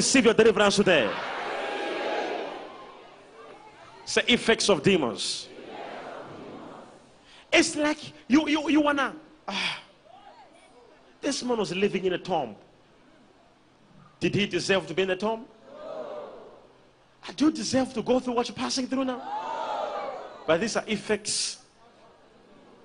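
A young man preaches forcefully through a microphone in a large echoing hall.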